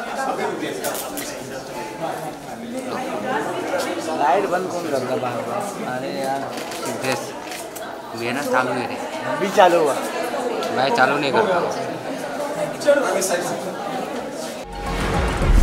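Several adults talk and call out nearby.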